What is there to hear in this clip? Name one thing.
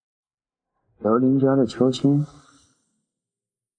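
A man speaks close by in a low voice.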